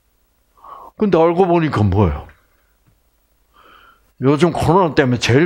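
An elderly man speaks with animation through a headset microphone.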